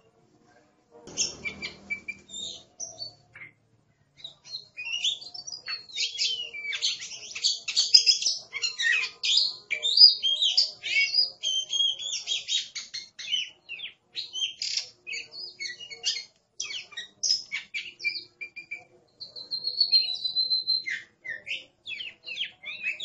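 A songbird sings a varied run of loud, warbling whistles and chirps close by.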